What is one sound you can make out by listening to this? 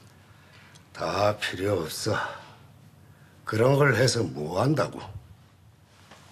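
An elderly man speaks slowly in a low voice nearby.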